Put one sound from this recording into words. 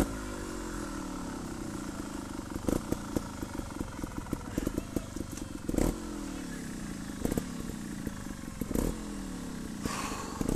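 A motorcycle engine revs up and down nearby.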